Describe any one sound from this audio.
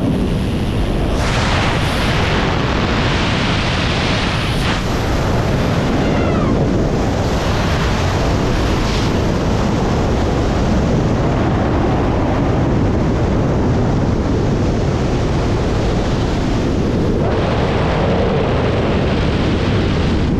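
Strong wind roars steadily past in free fall.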